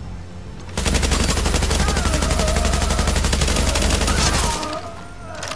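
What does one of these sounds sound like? A rifle fires in a long rapid burst.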